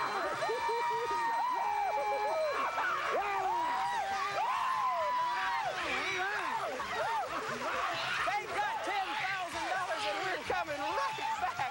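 A group of women and men scream and cheer with excitement.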